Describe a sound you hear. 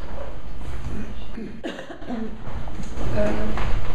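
A woman speaks quietly into a microphone in a reverberant room.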